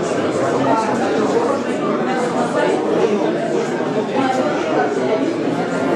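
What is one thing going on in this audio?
A woman speaks into a handheld microphone, interviewing an older man.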